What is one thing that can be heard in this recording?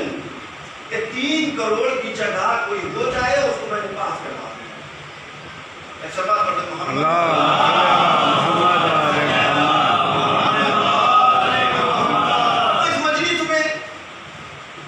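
A man speaks with animation through a microphone in an echoing room.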